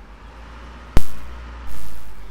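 A car slams into something with a loud crash.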